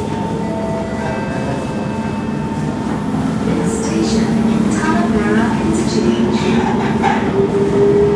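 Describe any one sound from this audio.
A train rumbles and hums as it moves, growing louder.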